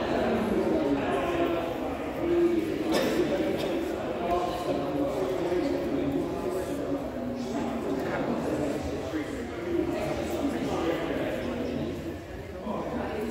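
Many people talk at once in a large echoing hall.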